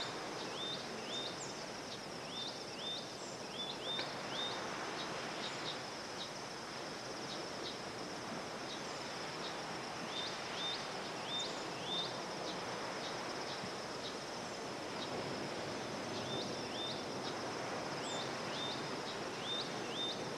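Gentle waves wash softly against the shore.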